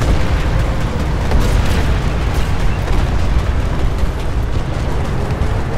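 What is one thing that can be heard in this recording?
A heavy vehicle engine rumbles steadily as it drives over rough ground.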